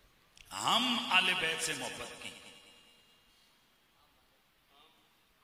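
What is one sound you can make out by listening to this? A man speaks with feeling into a microphone, heard through a loudspeaker with some echo.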